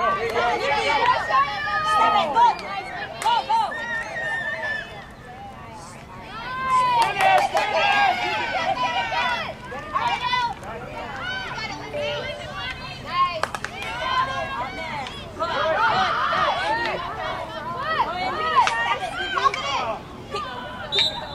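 Field hockey sticks clack against a ball.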